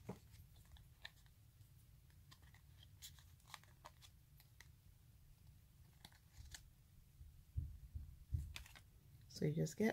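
Tweezers tap and scrape against a sticker sheet.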